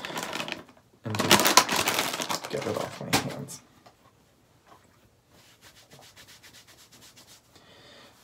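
Paper tissue crinkles and rustles in hands.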